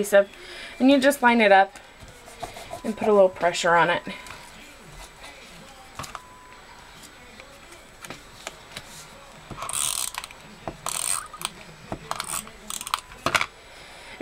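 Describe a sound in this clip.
Paper discs rustle and tap as they are handled.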